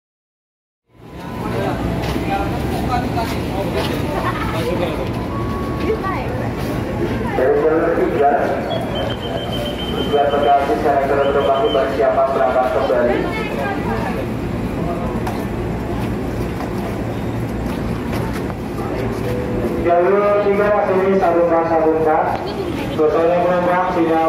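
A crowd murmurs and chatters loudly in an echoing station hall.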